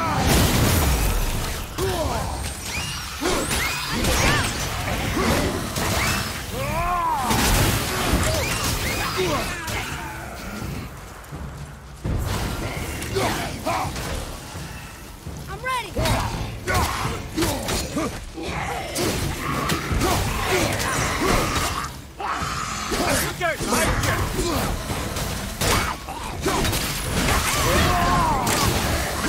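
Heavy blows and slashes strike again and again in a fight.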